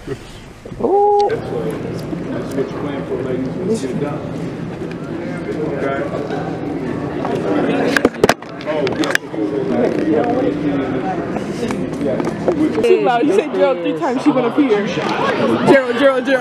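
A crowd of young people chatters close by.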